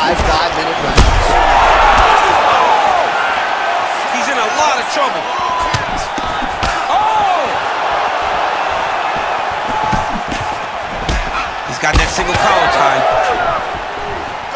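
Punches land with heavy thuds on a fighter's body.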